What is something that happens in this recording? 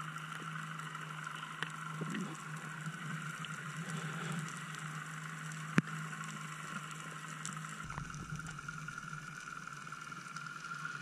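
Water murmurs dully underwater, with muffled clicks and crackles.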